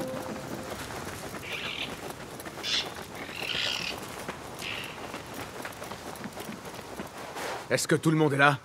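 Quick footsteps run over soft sand.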